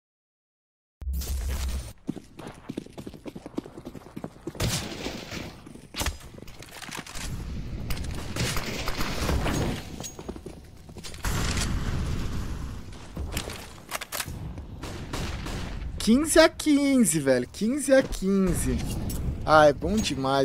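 Gunfire and game sound effects crack and rattle in a video game.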